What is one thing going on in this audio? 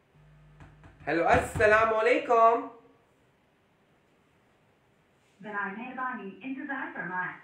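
A young woman speaks close by in a casual, animated voice.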